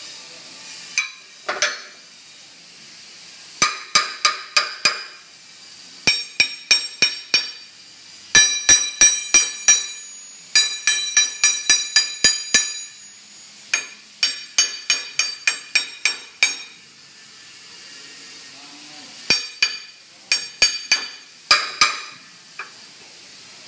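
Hanging metal pipes knock together and ring out with clear, bell-like tones in quick bursts.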